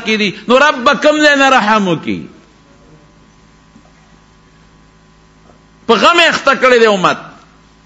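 An elderly man preaches loudly and with fervour into a microphone.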